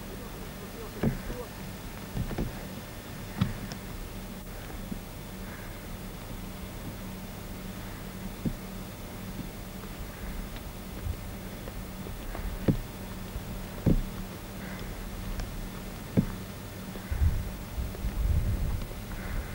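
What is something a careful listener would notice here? Footsteps crunch on a gravel path.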